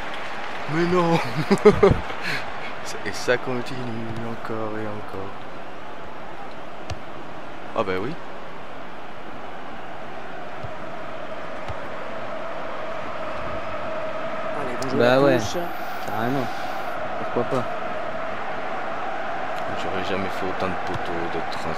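A stadium crowd murmurs in a football video game.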